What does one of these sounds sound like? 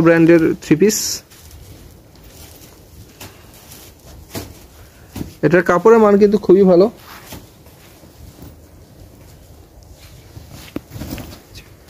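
Cloth rustles as it is unfolded and shaken.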